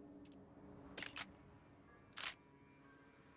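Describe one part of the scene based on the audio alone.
A gun clicks as it is handled.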